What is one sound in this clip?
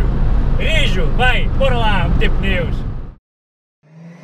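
A young man sings loudly along to music.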